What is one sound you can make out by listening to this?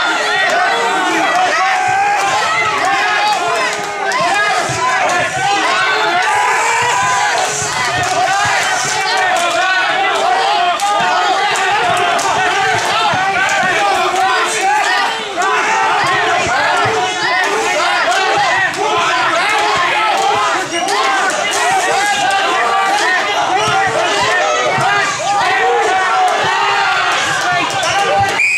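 A crowd of men and women cheers and shouts loudly in a large echoing hall.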